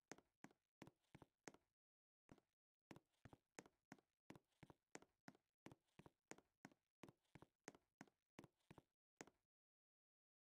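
Footsteps tap in a quick, steady walk.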